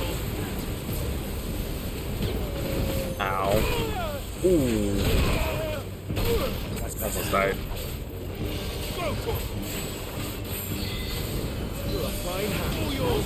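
Flames roar and crackle in a deep, steady rumble.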